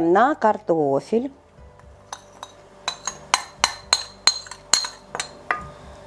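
Thick sauce pours and splashes softly into a dish.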